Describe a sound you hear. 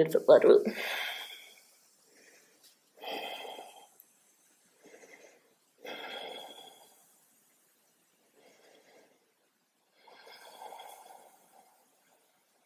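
A woman breathes out deeply and slowly.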